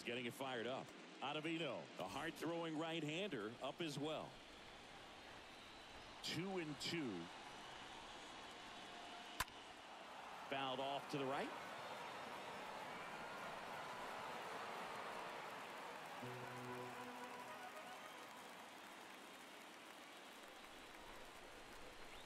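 A crowd murmurs and cheers in a large stadium.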